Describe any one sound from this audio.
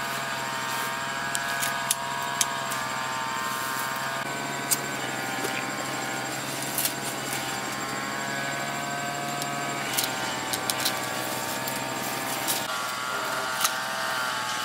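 Pruning shears snip through stems.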